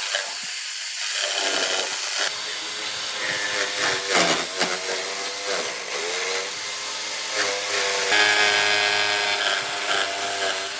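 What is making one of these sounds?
An electric jigsaw buzzes loudly as it cuts through wood.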